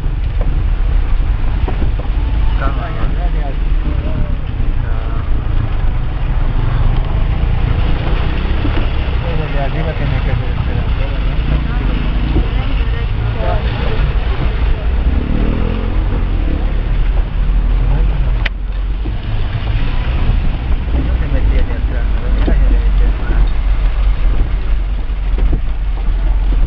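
A vehicle engine rumbles nearby.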